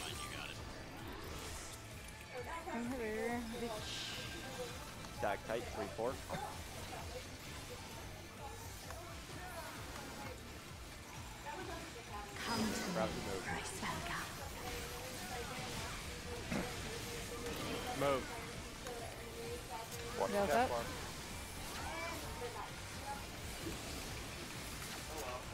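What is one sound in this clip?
Magic spells whoosh and chime in bursts.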